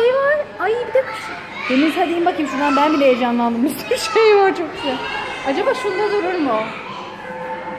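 A young child shouts and babbles close by.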